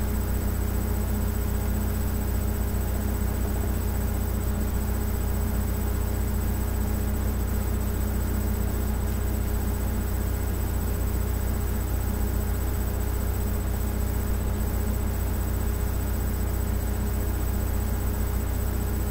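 Music plays loudly through a small tablet speaker.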